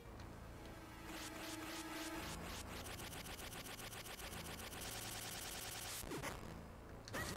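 Short electronic game sound effects chime and beep.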